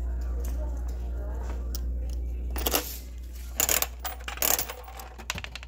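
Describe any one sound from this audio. A crank clicks and ratchets as it is turned.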